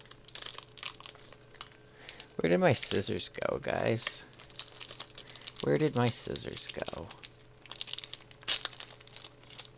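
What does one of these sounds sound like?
A foil wrapper crinkles and tears as hands pull it open.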